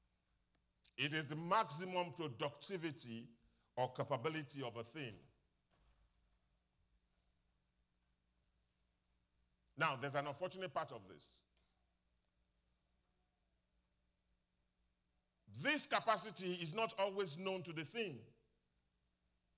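A man speaks through a microphone in short bursts, with pauses between phrases.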